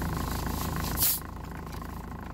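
A soda bottle cap hisses open.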